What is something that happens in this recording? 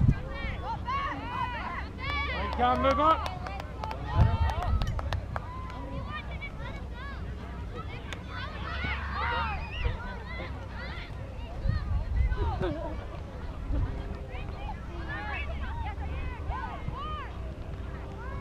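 Adult spectators on the sideline talk and call out close by.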